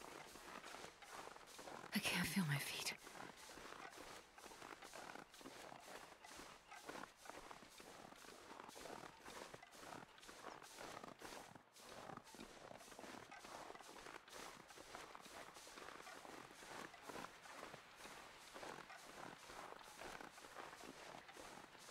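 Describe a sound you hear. Footsteps crunch steadily through deep snow.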